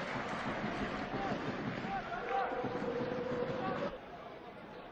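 A crowd roars and cheers in an open stadium.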